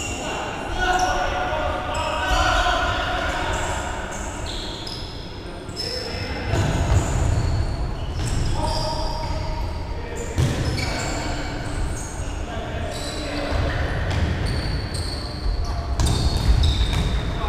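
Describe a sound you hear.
A ball thuds against feet and the floor.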